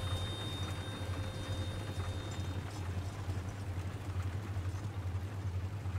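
Horse hooves clop on a dirt track.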